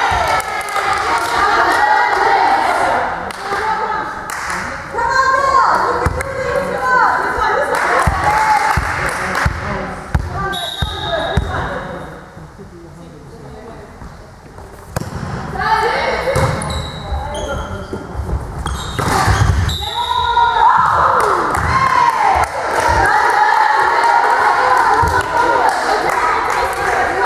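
Young women shout and cheer in an echoing sports hall.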